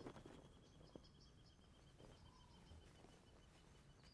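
Curtains rustle as they are pulled open.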